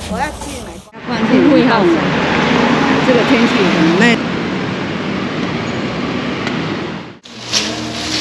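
Traffic rumbles past on a busy street.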